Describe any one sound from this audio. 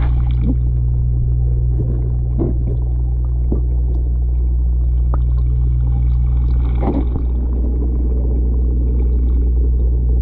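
An aquarium air pump hums steadily and low.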